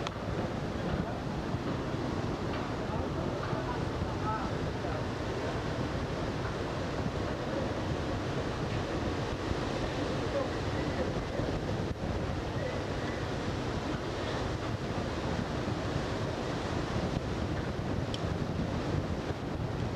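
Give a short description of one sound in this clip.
Water rushes steadily along the side of a moving boat.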